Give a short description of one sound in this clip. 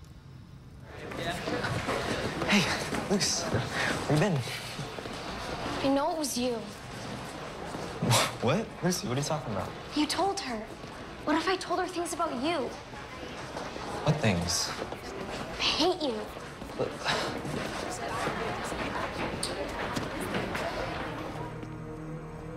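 Children chatter in a busy, echoing hallway.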